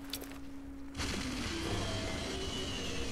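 A fire bursts up and roars nearby.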